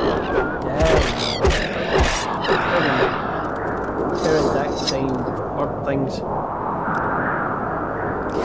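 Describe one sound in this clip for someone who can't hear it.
A winged creature screeches shrilly.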